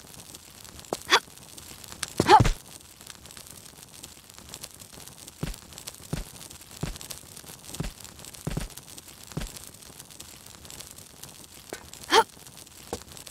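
A woman grunts with effort as she leaps and climbs.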